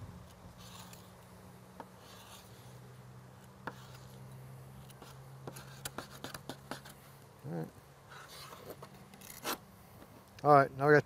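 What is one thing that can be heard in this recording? A knife slices through fish flesh with soft clicks.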